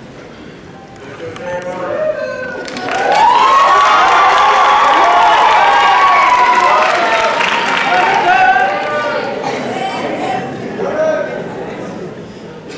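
A large crowd cheers and whoops loudly in a big echoing hall.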